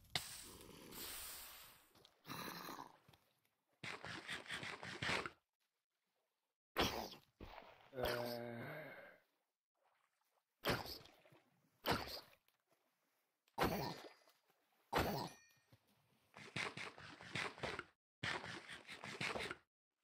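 Water splashes as a video game character swims.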